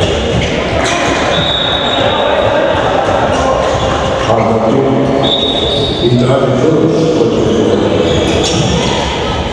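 A ball thumps on the floor in a large echoing hall.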